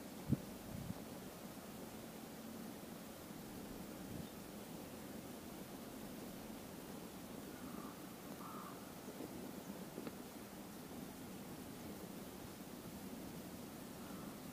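A stove burner hisses steadily under a metal pot.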